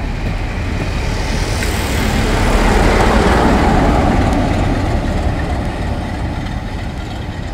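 A diesel locomotive roars loudly as it passes close by.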